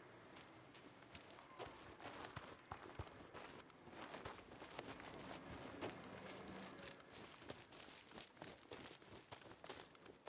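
Footsteps crunch quickly through grass and dirt.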